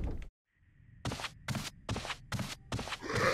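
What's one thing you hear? Slow, heavy footsteps shuffle on a hard floor.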